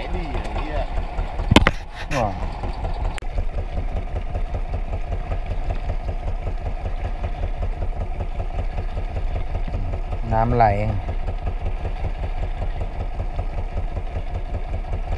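A boat engine chugs steadily.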